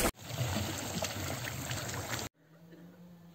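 Water bubbles and churns steadily.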